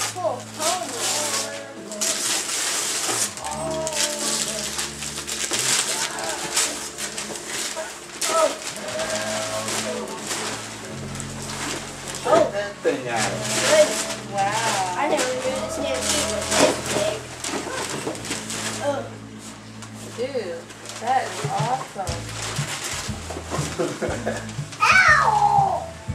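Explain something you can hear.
Wrapping paper rustles and tears as children unwrap presents.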